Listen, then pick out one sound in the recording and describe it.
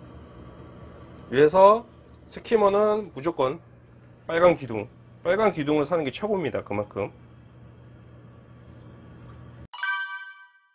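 Air bubbles fizz and churn in water.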